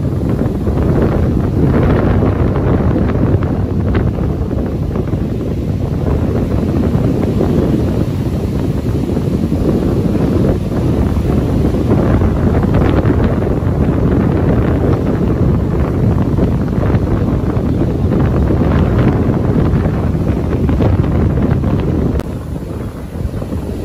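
Strong wind rumbles outdoors.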